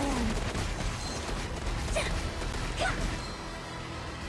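Video game combat effects clash and burst loudly.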